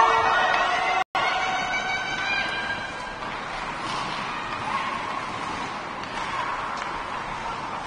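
Ice skates scrape and swish across an ice rink.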